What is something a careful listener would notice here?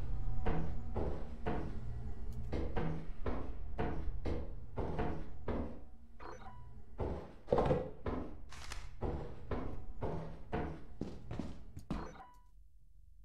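Footsteps clang steadily on metal stairs and grating.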